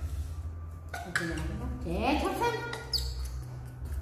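A young monkey squeals in rising cries.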